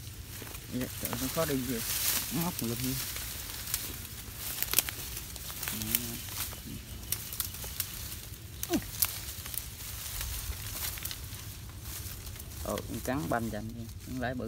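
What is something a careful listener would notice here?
Dry bamboo stalks and leaves rustle and crackle close by.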